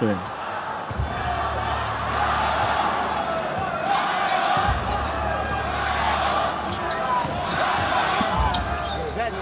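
A basketball thumps on the court as a player dribbles.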